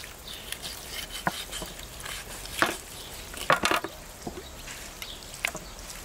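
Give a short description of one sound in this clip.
A knife chops through meat and bone with sharp knocks.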